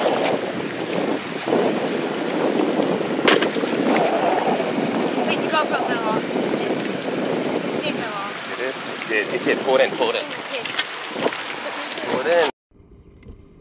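Seawater laps and splashes against a concrete seawall.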